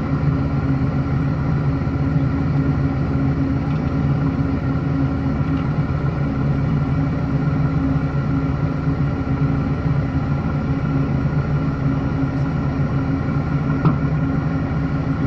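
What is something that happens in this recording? An engine rumbles steadily as an off-road vehicle crawls slowly over rocks nearby.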